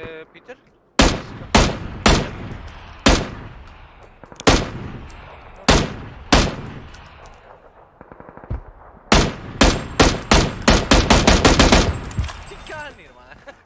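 Rifle shots crack one after another in a game.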